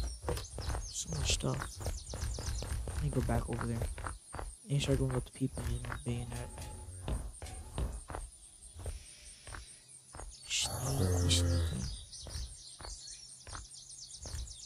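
Footsteps thud on the ground at a steady walking pace.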